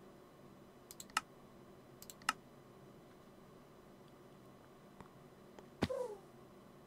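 Short soft clicks sound now and then as menu pages are turned.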